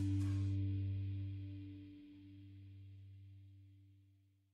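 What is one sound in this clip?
A bass guitar note rings out and slowly fades.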